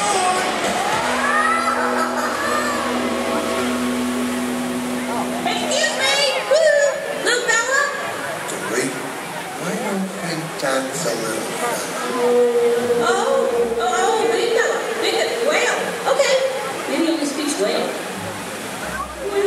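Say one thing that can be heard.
Music plays loudly over outdoor loudspeakers.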